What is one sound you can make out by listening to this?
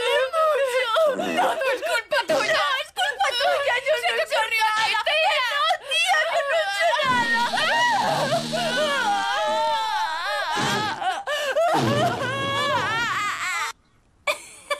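A teenage girl wails and cries loudly up close.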